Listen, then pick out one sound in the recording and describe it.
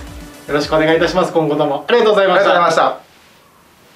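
Two young men speak together in unison, politely and close by.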